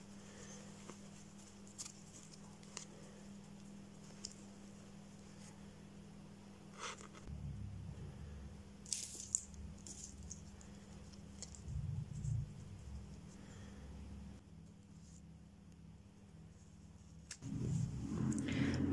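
Hands rustle and fold fabric.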